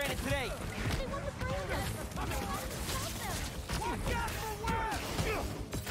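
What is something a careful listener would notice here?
Punches and kicks thud in a game fight.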